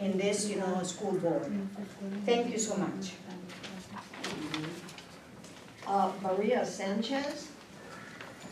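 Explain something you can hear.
A woman speaks into a microphone, heard through a loudspeaker in a room.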